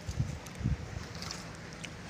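Footsteps squelch on wet mud.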